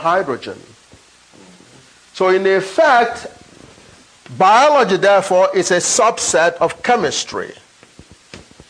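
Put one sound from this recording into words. A man speaks with animation, lecturing nearby.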